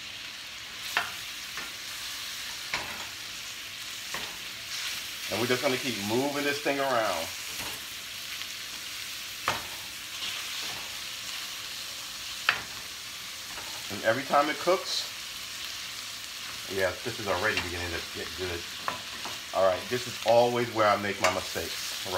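A wooden spatula scrapes and knocks against a metal pan.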